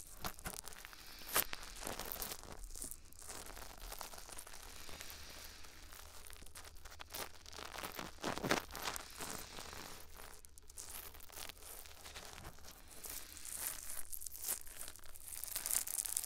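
A thin tool scratches and scrapes very close to a microphone.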